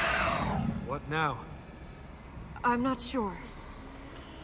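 A man speaks briefly in a calm, low voice.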